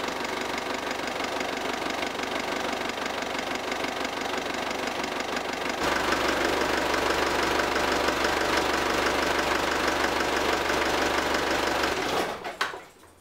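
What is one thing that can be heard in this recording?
An engine idles steadily close by.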